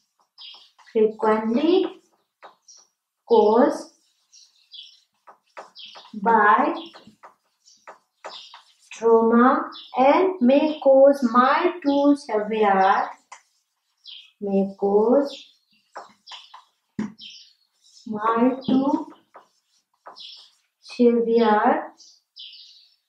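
A woman speaks slowly and calmly nearby.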